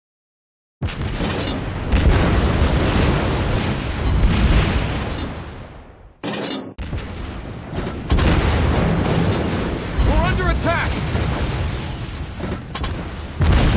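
Shells explode against a warship with loud bangs.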